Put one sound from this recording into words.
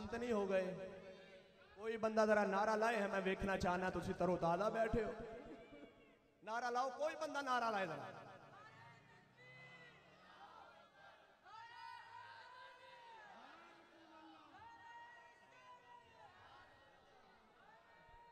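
A man chants loudly and melodically into a microphone, heard through echoing loudspeakers.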